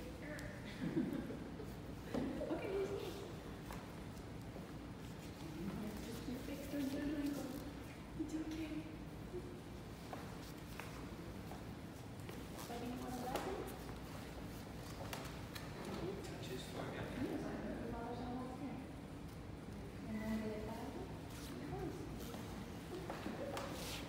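An elderly man reads out calmly in an echoing room.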